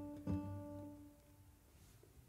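A guitar chord rings out and fades in an echoing room.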